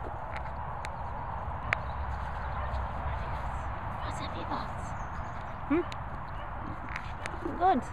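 A Staffordshire bull terrier chews and gnaws a rubber toy.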